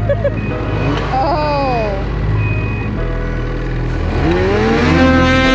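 A snowmobile engine idles with a low steady rumble.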